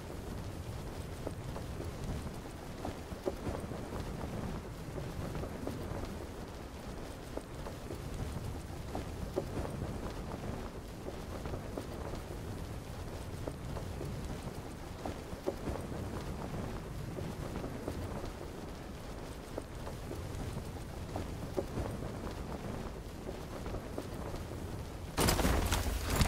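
Wind rushes steadily past a parachute gliding down.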